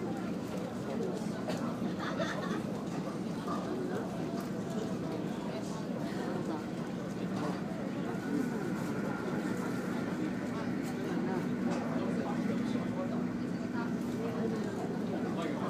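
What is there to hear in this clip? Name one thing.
A boat's engine rumbles steadily.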